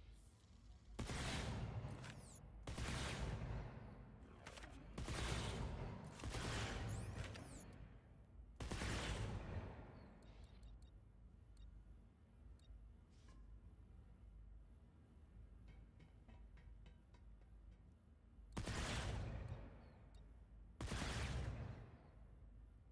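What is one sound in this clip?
Game menus switch with short whooshing sweeps.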